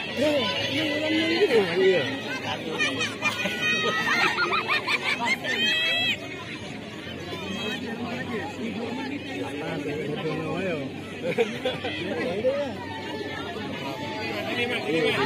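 Several young men talk and call out to each other outdoors.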